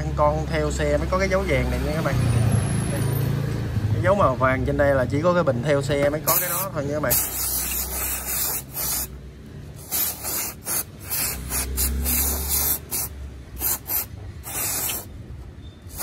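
A cloth rubs against metal.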